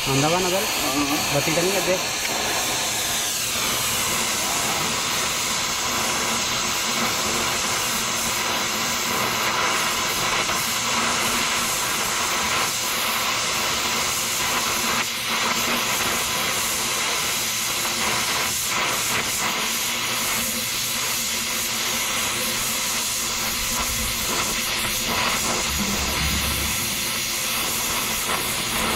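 A cutting torch roars with a steady, loud hiss.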